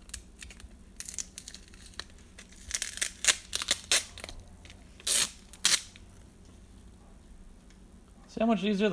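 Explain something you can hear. Plastic foil crinkles and tears as a card pack is opened.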